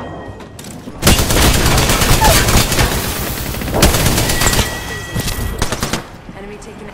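Rapid gunfire rattles loudly at close range.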